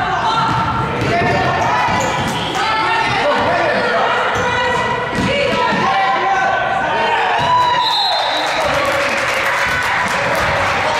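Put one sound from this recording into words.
Sneakers squeak sharply on a hard floor in a large echoing hall.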